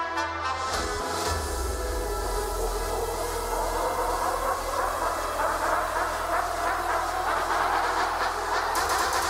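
Dance shoes tap and stamp on a stage floor.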